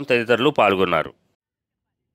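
A crowd of men chants slogans loudly in unison.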